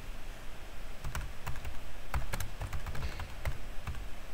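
Laptop keys click as a man types.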